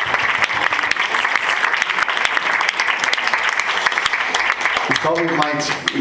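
An audience claps in a large room.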